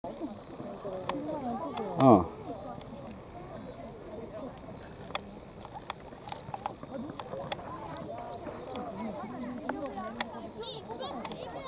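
Boys shout and call out to each other outdoors.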